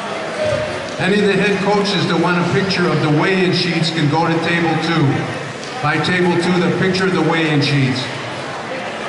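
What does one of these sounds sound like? A man calls out loudly in a long, drawn-out voice.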